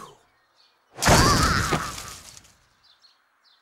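Dry leaves rustle as they scatter and fall.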